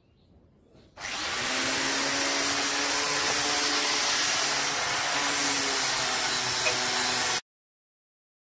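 A power sander whirs loudly against wood.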